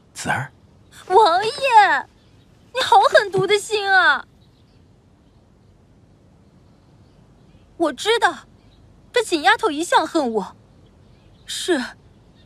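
A young woman speaks sharply, close by.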